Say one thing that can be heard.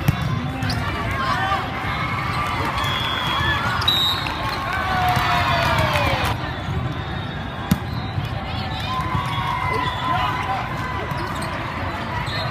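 A crowd of players and spectators chatters in a large echoing hall.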